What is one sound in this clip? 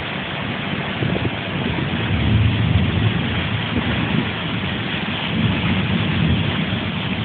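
Wind gusts and rumbles against the microphone.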